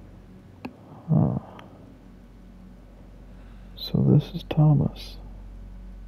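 A pocket watch clicks open and shut.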